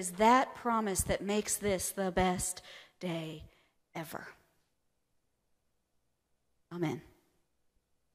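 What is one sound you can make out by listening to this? A woman speaks calmly into a microphone in a large echoing room.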